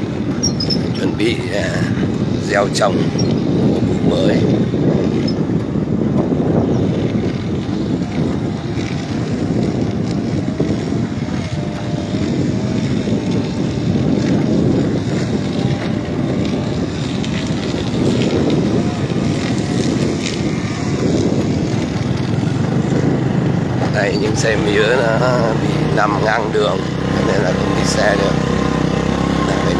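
Tyres roll over a dirt road.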